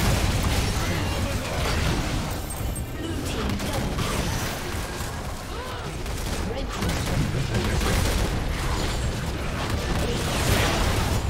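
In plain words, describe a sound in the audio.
Magic blasts and clashing impact effects of a busy video game battle sound out steadily.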